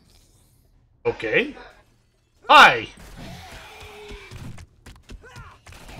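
A club thuds into a zombie with heavy blows.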